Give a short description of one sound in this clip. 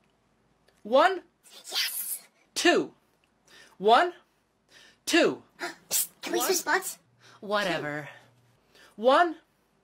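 A young man speaks with animation, close up.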